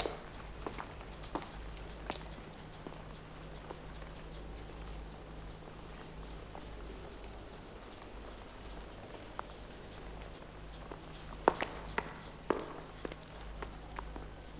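Footsteps tap on a wet stone floor.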